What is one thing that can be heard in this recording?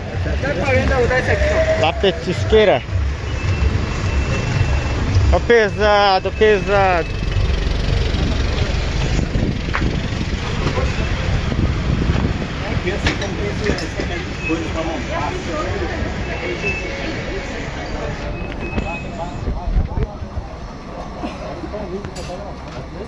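Traffic rumbles along a street.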